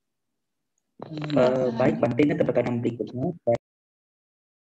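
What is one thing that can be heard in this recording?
A young man speaks over an online call.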